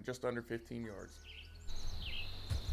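A man speaks calmly and close up.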